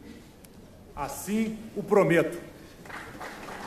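A man speaks firmly into a microphone in a large hall.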